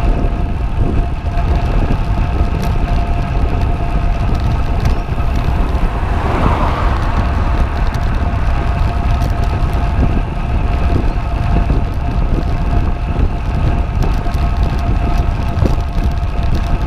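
Wind rumbles and buffets against the microphone while riding outdoors.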